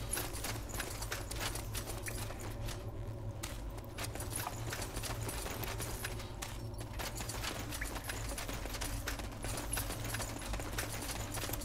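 Footsteps tread softly on stone.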